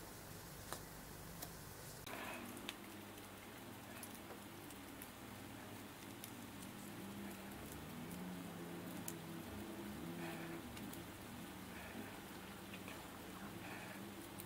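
Small metal parts click and tick softly.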